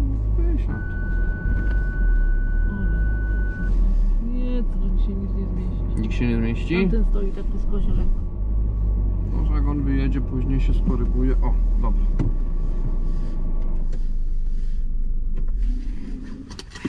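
A car engine hums low inside the car.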